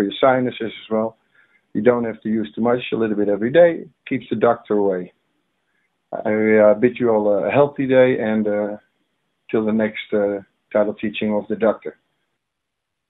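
A man talks calmly and close up.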